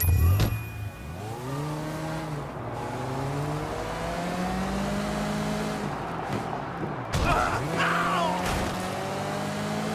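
A car engine starts and revs, rising and falling in pitch as the car accelerates.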